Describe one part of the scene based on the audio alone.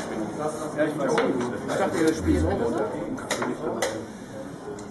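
Wooden chess pieces click on a wooden board.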